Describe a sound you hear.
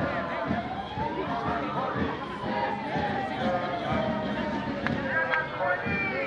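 Footsteps shuffle on pavement as a crowd marches.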